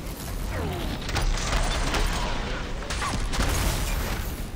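Electricity crackles and bursts loudly.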